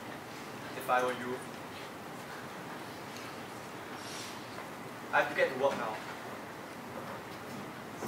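A young man speaks in a large echoing hall.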